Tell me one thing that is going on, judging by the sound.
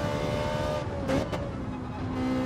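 A racing car engine drops in pitch with a quick shift down.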